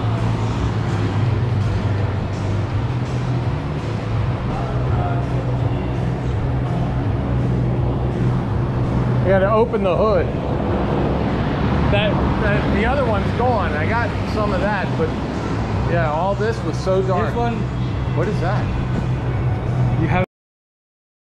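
A large electric fan hums steadily with a low drone.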